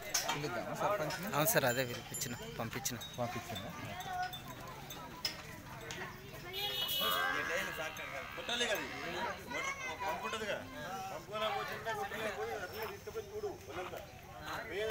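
Several men talk nearby outdoors.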